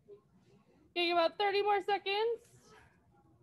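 A young girl calls out briefly in a high voice.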